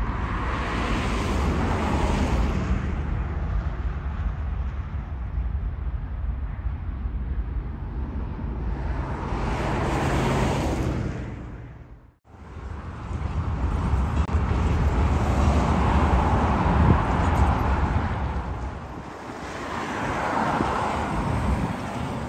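A freight train rumbles slowly along the tracks with wheels clanking.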